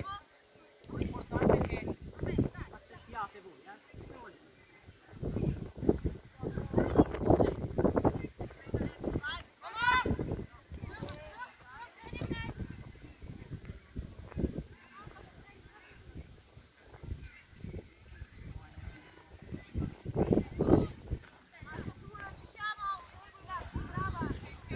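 Young women shout to each other across an open field outdoors.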